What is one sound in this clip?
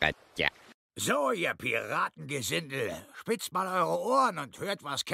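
A man speaks in a deep, gruff voice.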